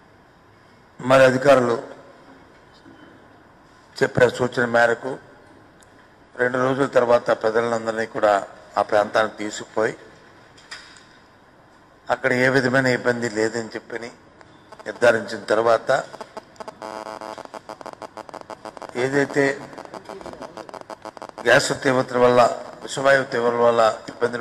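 A middle-aged man speaks firmly into a microphone in bursts with pauses.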